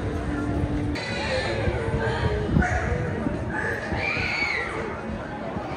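Women scream and shriek in excitement.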